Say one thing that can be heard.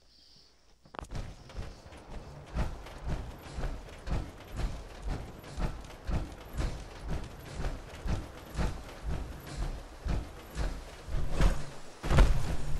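Heavy metallic footsteps thud at a steady walking pace.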